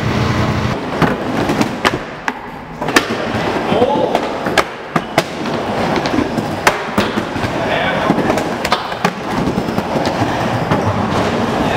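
Skateboard trucks clack and knock sharply against the bowl's edge.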